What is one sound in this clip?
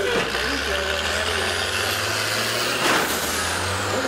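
A bus crashes into another bus with a loud bang.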